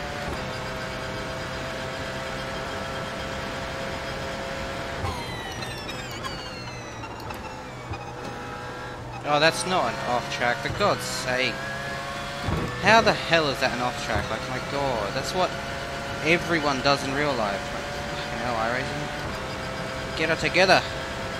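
A race car engine hums steadily, then drops in pitch as the car slows and climbs again as it speeds up.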